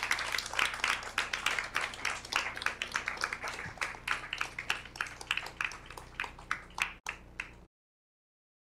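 An audience applauds and claps.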